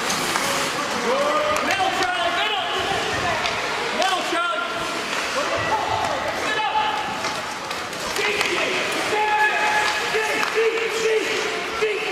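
Spectators shout and cheer in an echoing indoor rink.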